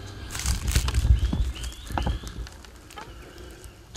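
Footsteps crunch on dry leaves outdoors.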